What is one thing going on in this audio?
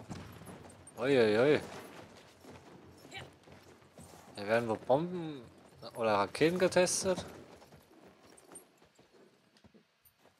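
A horse gallops over soft sand.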